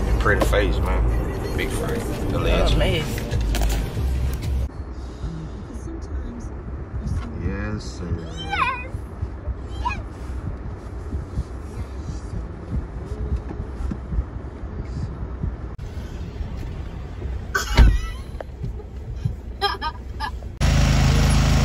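A car engine hums inside a car.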